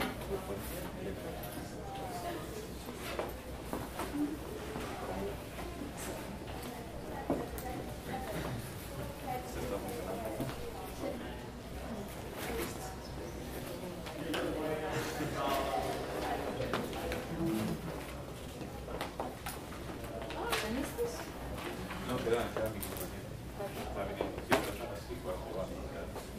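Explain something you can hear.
Footsteps shuffle across a floor.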